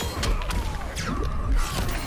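A beam of energy blasts with a loud whoosh.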